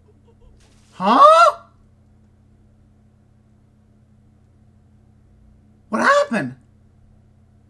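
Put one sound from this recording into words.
A young man gasps loudly into a close microphone.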